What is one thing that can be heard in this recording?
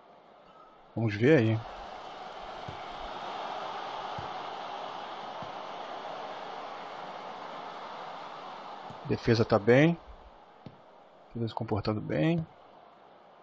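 A referee's whistle blows in sharp bursts.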